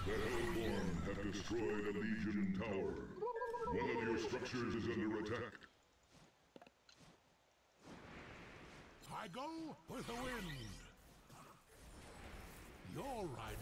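Fantasy battle sound effects clash and whoosh.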